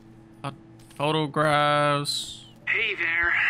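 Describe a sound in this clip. A young man speaks loudly and with animation into a microphone.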